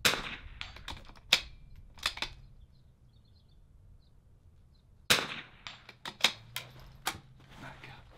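A rifle bolt clacks as it is worked.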